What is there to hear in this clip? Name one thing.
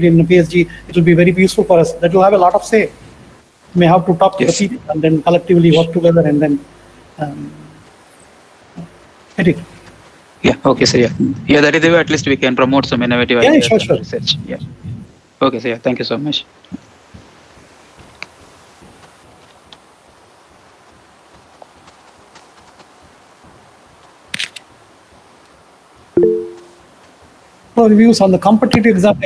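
A middle-aged man speaks calmly over an online call, in pauses.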